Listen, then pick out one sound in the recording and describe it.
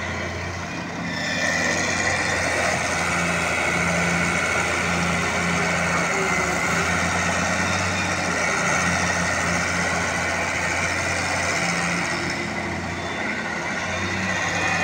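An excavator's diesel engine rumbles and strains as its arm swings.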